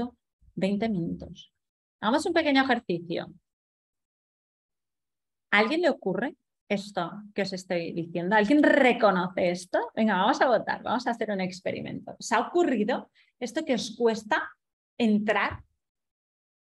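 A young woman speaks calmly over an online call, reading out.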